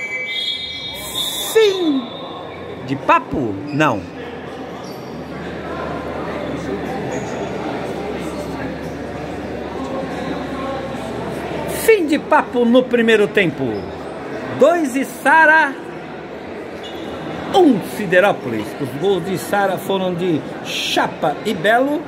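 A crowd of men chatters in the background of a large echoing hall.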